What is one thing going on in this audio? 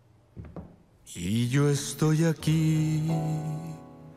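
A man sings loudly.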